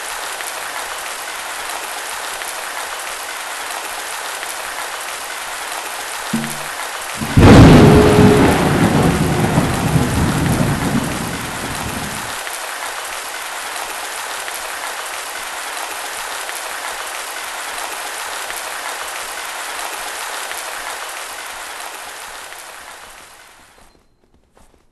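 Wind blows steadily over open snow.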